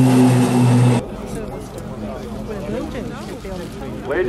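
Propeller engines whine and shift in pitch as planes sweep past.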